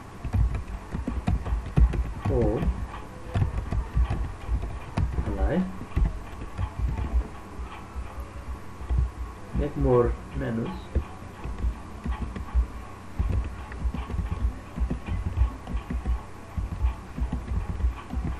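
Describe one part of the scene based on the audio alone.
Keys clatter on a keyboard in quick bursts.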